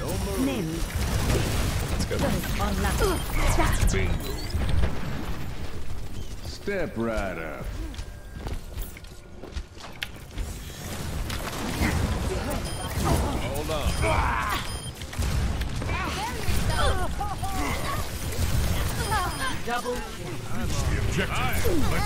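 Gunfire crackles in quick bursts from a game.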